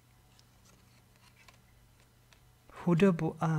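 Playing cards shuffle softly with light clicks.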